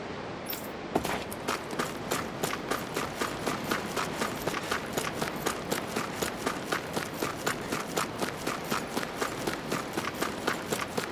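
Footsteps patter quickly and steadily across a hard surface.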